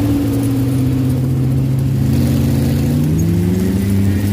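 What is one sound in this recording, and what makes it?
A dune buggy engine revs up with rising pitch.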